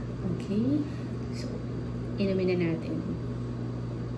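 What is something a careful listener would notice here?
A young woman speaks briefly and casually, close to a microphone.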